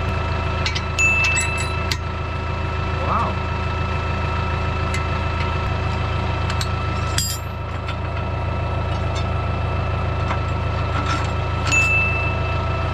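Metal pins clink against a hitch.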